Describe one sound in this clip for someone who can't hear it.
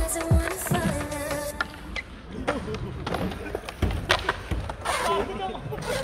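Skateboard wheels roll and clack on concrete.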